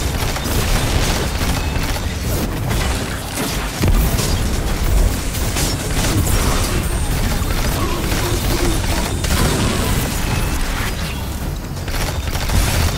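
Rapid gunfire blasts again and again.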